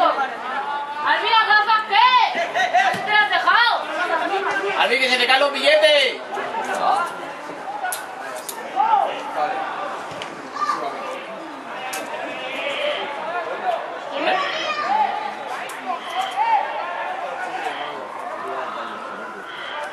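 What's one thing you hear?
Spectators shout outdoors.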